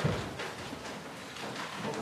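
Footsteps tread on a hard floor nearby.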